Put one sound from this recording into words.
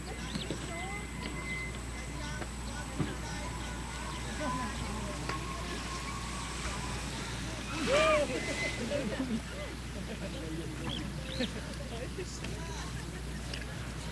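A young woman talks casually nearby.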